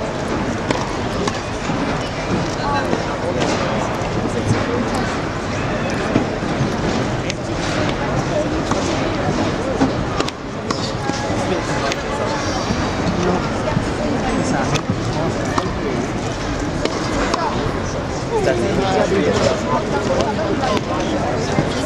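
A tennis racket strikes a ball with sharp pops in a large echoing hall.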